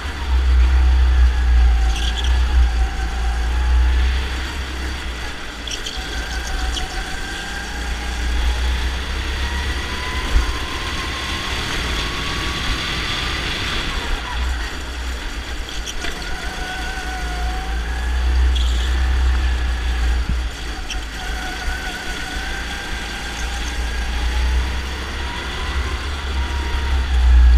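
A go-kart engine buzzes up close, rising and falling in pitch as it speeds up and slows down through the corners.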